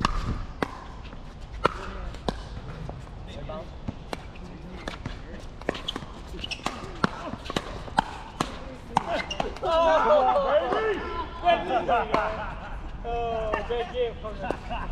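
Paddles sharply pop against a plastic ball in a quick back-and-forth rally.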